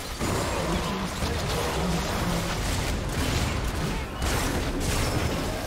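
Spell blasts and weapon hits crackle and clash in a fast fight.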